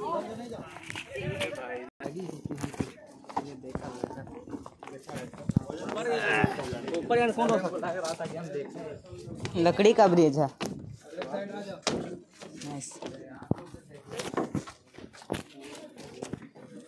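Several young men talk nearby with animation.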